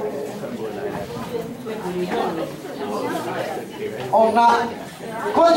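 Several people chatter at once in a room with a slight echo.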